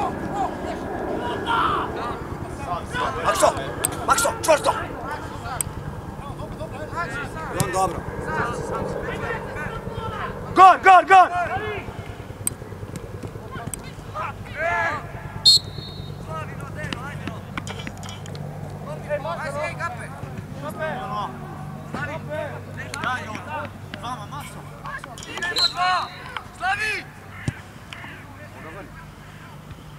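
Boys shout to each other across an open pitch outdoors.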